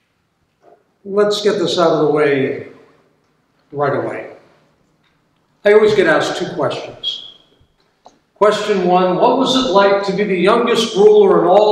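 A middle-aged man speaks slowly and solemnly into a microphone.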